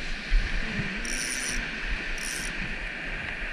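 A fishing reel clicks as line is pulled off.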